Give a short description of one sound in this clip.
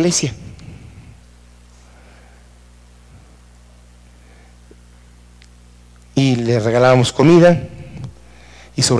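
A man speaks loudly through a microphone, in short bursts with long pauses.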